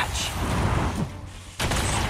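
Debris crashes and scatters across a hard floor.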